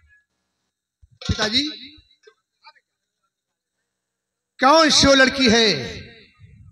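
An older man speaks loudly through a loudspeaker.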